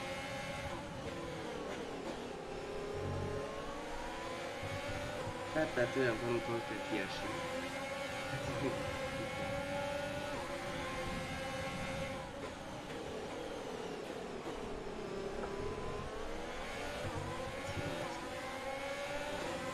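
A racing car engine drones steadily, its pitch rising and falling as the car speeds up and slows down.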